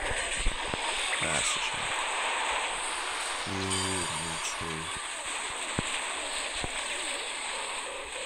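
Game dragons breathe crackling electric blasts.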